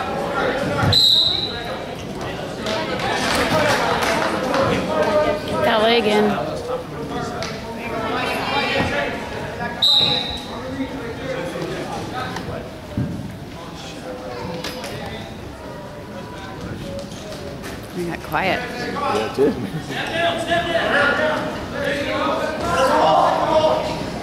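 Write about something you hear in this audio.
Spectators shout and cheer in a large echoing hall.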